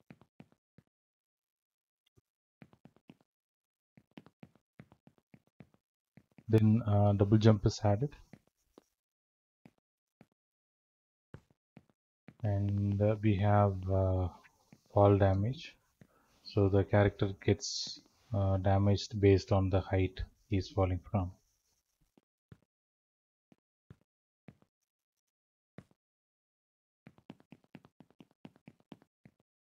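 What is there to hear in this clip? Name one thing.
Footsteps patter quickly on a hard floor.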